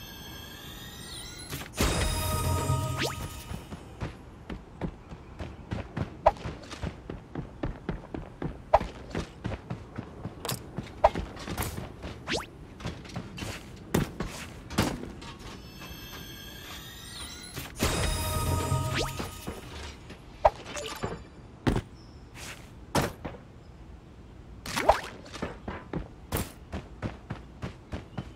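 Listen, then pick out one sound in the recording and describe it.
Quick footsteps patter steadily.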